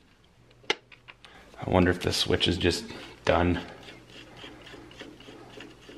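A screwdriver scrapes and clicks against a screw.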